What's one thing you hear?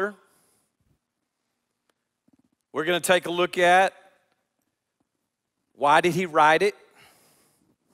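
An older man speaks with animation through a microphone in a large echoing hall.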